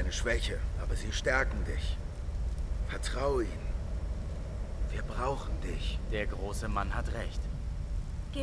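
A man speaks calmly and closely.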